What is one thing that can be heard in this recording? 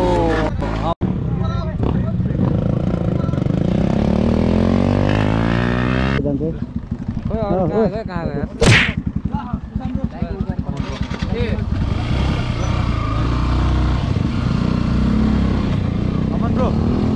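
A motorcycle engine idles and revs up close.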